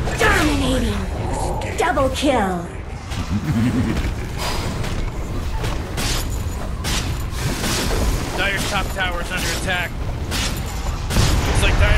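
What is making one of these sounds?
Weapons clash and magic spells burst in quick, sharp hits.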